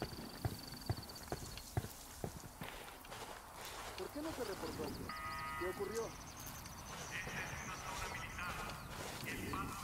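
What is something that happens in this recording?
Footsteps crunch on dry grass and dirt.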